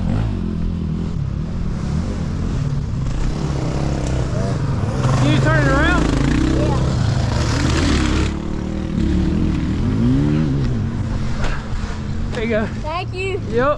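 A dirt bike idles close by.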